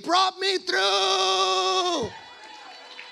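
A man sings a loud, long held note through a microphone.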